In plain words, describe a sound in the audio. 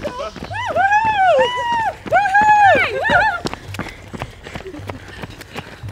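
Footsteps of runners patter on a paved path.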